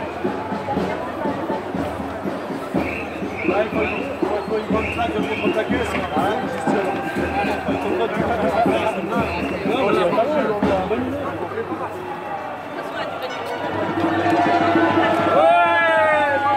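A crowd of marchers talks and chants outdoors.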